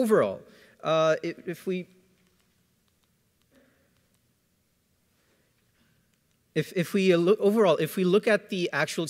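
A young man speaks with a pause into a microphone, heard through loudspeakers in a large hall.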